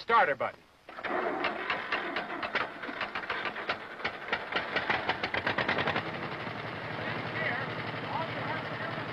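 A tractor engine runs and rumbles.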